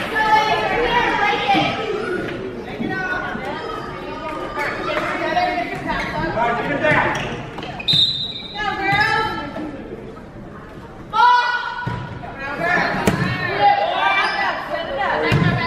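Young women shout and call out to each other in a large echoing gym.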